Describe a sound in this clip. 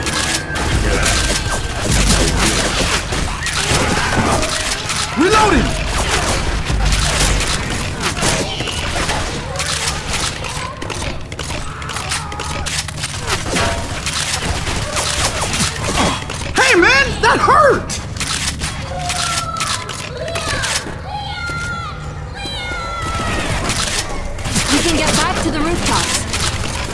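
A melee weapon swings and thuds into bodies again and again.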